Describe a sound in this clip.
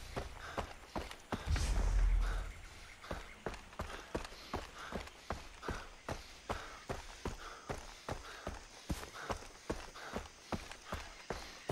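Footsteps crunch steadily on a dirt path at a walking pace.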